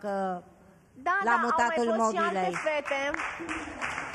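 An elderly woman speaks into a microphone.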